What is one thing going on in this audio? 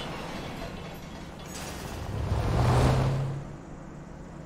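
A car engine roars closer and then fades.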